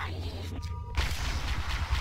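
A heavy blow strikes with a thud.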